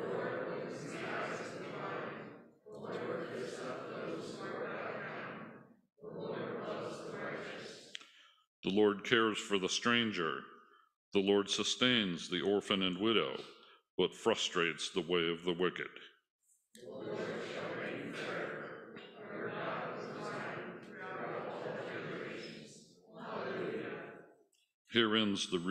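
An elderly man reads aloud calmly into a microphone.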